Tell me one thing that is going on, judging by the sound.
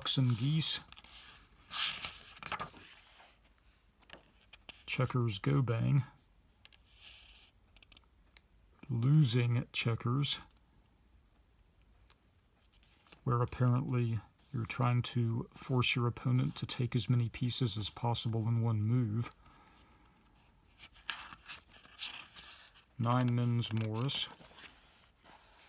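A book's paper page rustles as it is turned.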